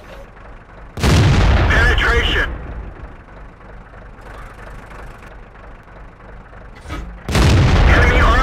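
A tank cannon fires with a loud, ringing boom.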